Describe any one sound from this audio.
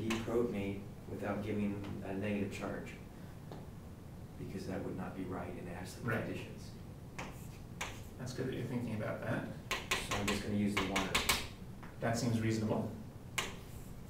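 A young man speaks calmly in an echoing room.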